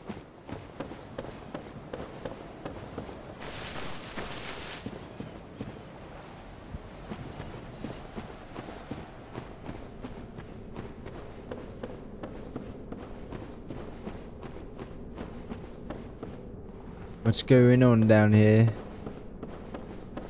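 Footsteps thud and crunch at a quick, steady pace.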